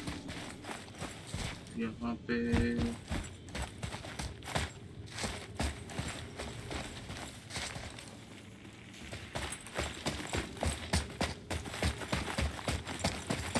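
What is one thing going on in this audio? Heavy footsteps crunch on stone and gravel at a steady walking pace.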